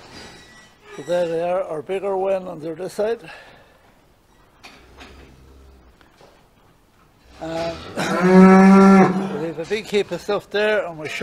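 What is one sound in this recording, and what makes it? Cattle moo loudly nearby.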